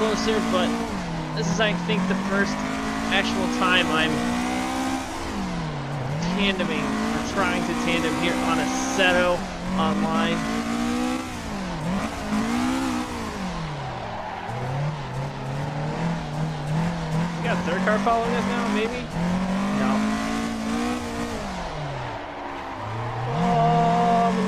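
A racing car engine revs up and down as gears shift.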